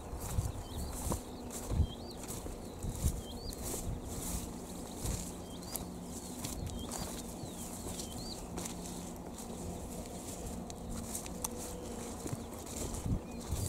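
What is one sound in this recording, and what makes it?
Footsteps tread and swish through low plants.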